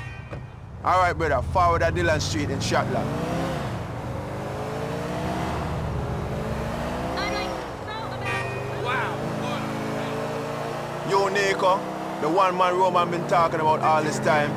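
A car engine revs and roars as the car drives off.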